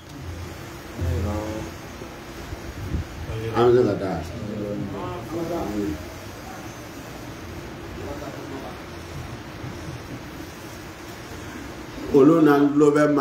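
A man speaks into a microphone with pauses, heard through a loudspeaker.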